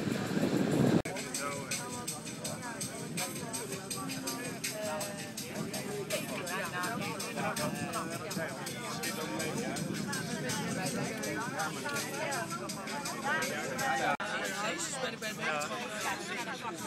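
People chatter nearby in a mix of voices.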